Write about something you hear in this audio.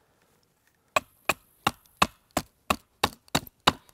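A blade shaves wood in quick, even strokes.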